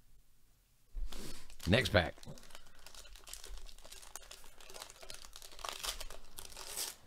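A foil wrapper crinkles and rustles as hands tear it open.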